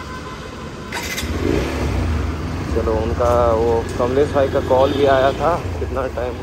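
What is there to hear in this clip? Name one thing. A motorcycle engine rumbles steadily nearby.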